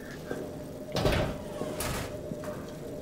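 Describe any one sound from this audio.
A heavy door creaks and scrapes open.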